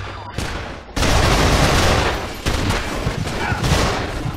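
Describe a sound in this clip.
Rapid gunfire bursts loudly and close.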